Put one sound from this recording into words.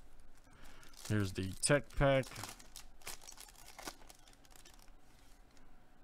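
A foil wrapper crinkles and tears as it is pulled open.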